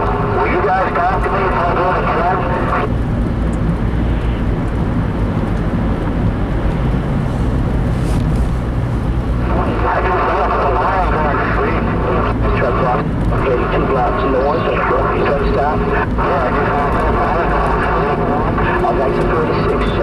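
Tyres roll over a paved road with a low rumble.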